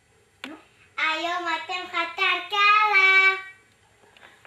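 A young girl sings into a microphone in a high voice.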